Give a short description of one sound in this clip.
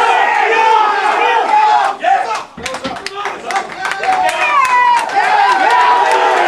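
A crowd of men shouts and cheers loudly nearby.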